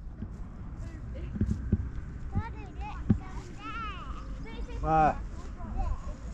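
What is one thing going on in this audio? Footsteps thud on dry grass.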